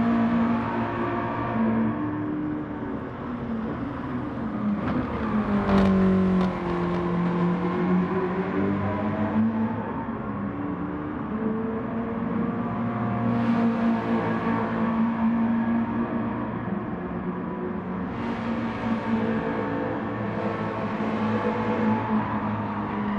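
A racing car engine roars, revving up and down through gear changes.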